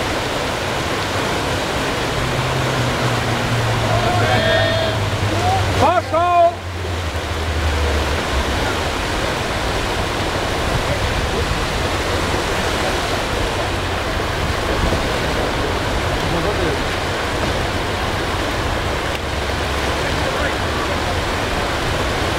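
White water rushes loudly over rapids outdoors.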